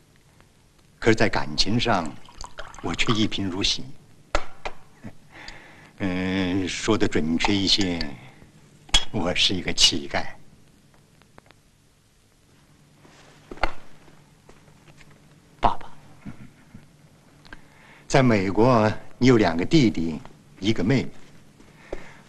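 An older man speaks calmly and clearly up close.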